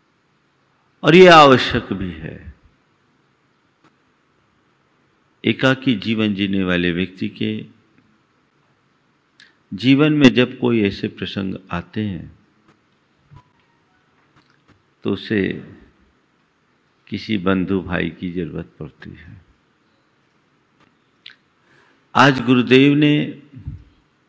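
An elderly man speaks calmly into a microphone in short phrases with long pauses.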